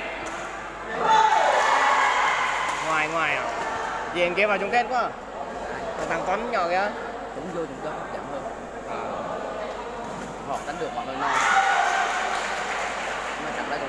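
Children shout and cheer in a large echoing hall.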